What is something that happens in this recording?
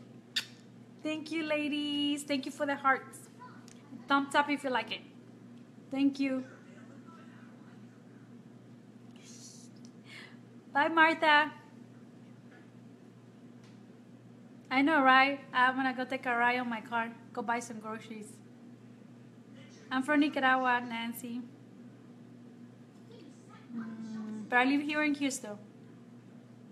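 A young woman talks animatedly and close to the microphone, in bursts with pauses.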